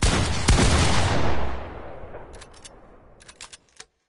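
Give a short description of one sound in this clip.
A loud gunshot blasts and rumbles away into a long fading echo.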